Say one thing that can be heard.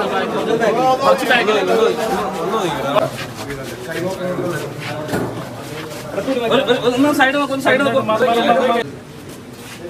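A crowd of men talk loudly over each other nearby.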